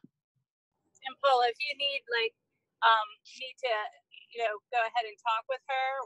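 A second woman speaks warmly over an online call.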